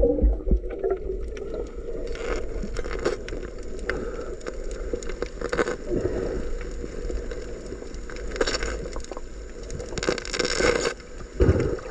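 A diver's breathing gear hisses and bubbles rush out underwater.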